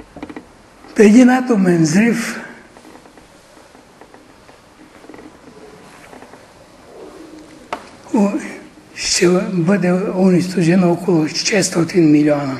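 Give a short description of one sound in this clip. An elderly man speaks slowly in an echoing room, with long pauses.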